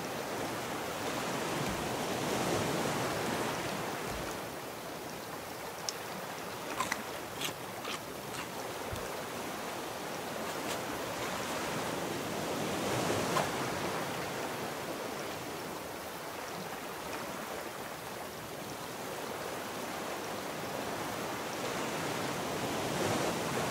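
Ocean waves wash steadily around a raft.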